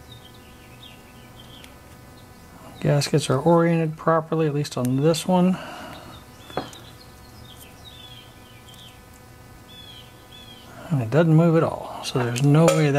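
Small metal parts click softly as they are handled.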